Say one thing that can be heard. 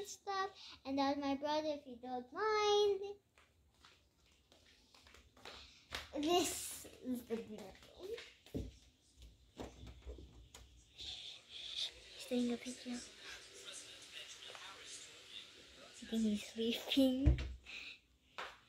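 A young girl talks and sings playfully close by.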